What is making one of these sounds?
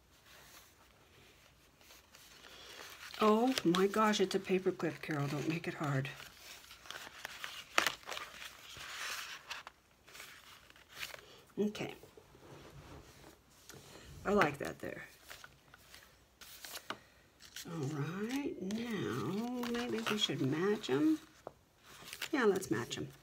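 Stiff paper pages rustle and flap as they are turned and handled.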